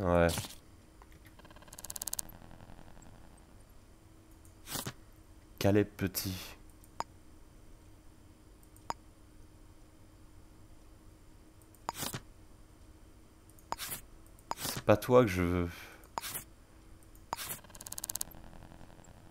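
Short game interface clicks and swishes sound now and then.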